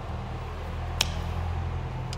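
A small metal clip clicks sharply as it comes off a terminal.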